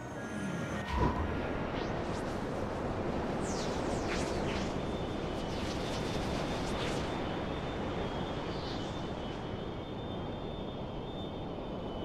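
A spaceship engine roars steadily as it rushes along.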